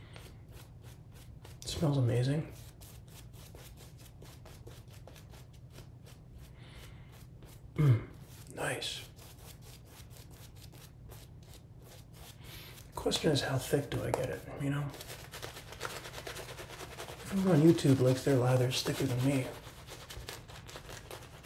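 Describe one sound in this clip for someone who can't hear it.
A shaving brush swishes and scrubs against stubbly skin.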